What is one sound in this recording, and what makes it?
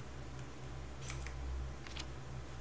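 A page of paper flips over with a quick rustle.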